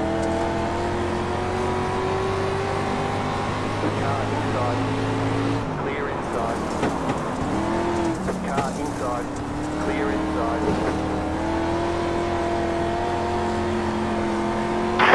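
A race car engine roars steadily, rising and falling in pitch.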